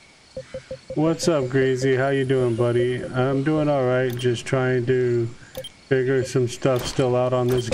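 A man talks into a microphone close by.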